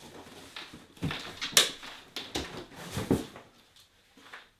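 A cardboard box thumps and scrapes as it is set down.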